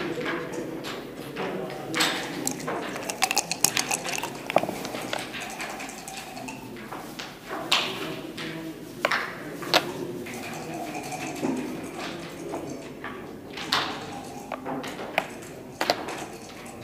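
Backgammon checkers click against a wooden board as they are moved.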